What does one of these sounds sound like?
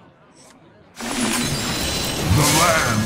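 A game's card is played with a bright whooshing flourish.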